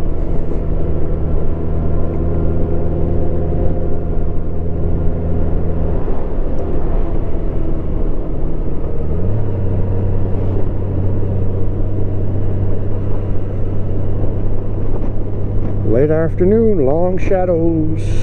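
A motorcycle engine hums steadily while riding, shifting pitch as it changes gear.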